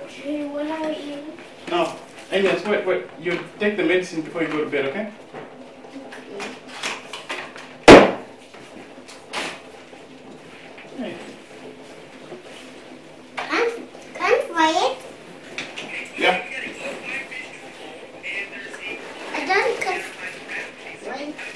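A young child babbles and shouts nearby.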